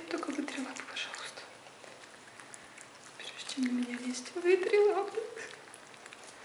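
A woman speaks softly and sweetly up close.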